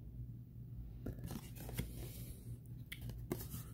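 A trading card is shuffled and rustles softly between fingers.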